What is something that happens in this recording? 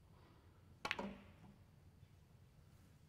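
Snooker balls clack together as the pack breaks.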